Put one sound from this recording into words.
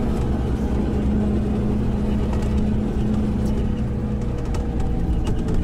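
Road noise rumbles low and steady from inside a moving vehicle.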